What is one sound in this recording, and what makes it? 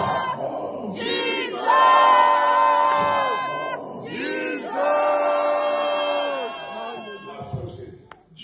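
A crowd sings loudly together in a large echoing hall.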